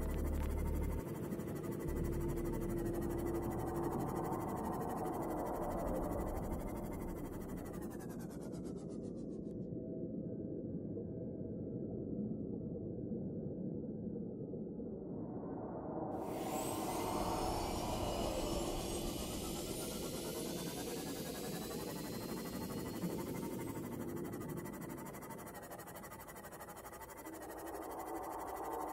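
A submarine engine hums steadily underwater.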